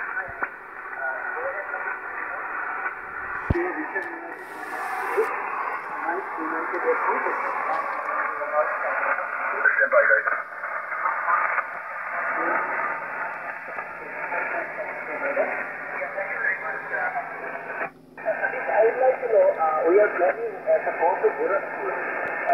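A shortwave radio receiver plays a noisy, crackling signal through its speaker.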